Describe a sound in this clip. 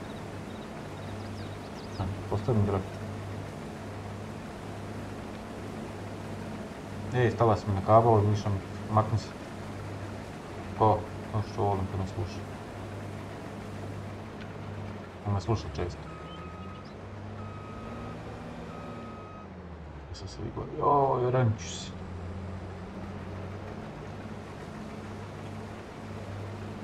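A combine harvester engine hums steadily.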